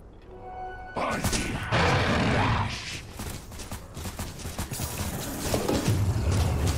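Game spell effects and attacks burst and clash.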